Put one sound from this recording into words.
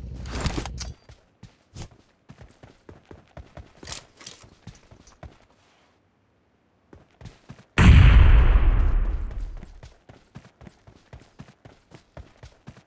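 Footsteps run over dirt and grass.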